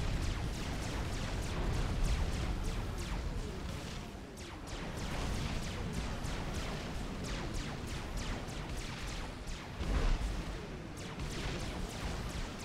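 A low rumble of game battle effects booms throughout.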